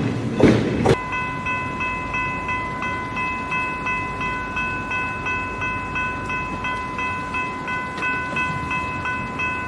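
A railway crossing bell rings steadily and fast.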